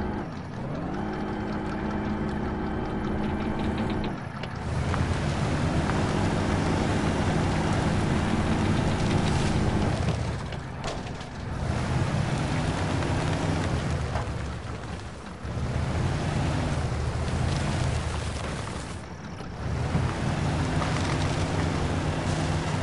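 Branches scrape and crack against a truck's body.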